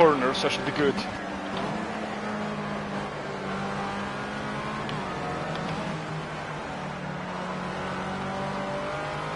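A racing car engine drones loudly, its pitch rising and falling as it revs and shifts gears.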